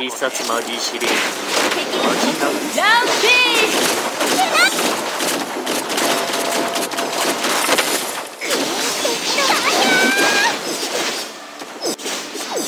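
Magic spells whoosh, zap and crackle in a fast, busy fight.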